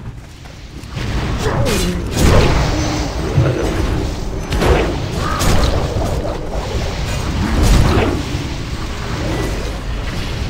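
Spell blasts and impacts crash and whoosh in a fierce fight.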